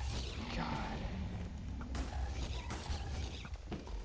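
Arrows whoosh through the air.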